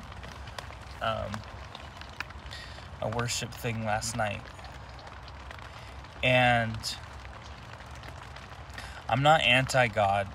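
A young man talks casually and close up, in short bursts with pauses.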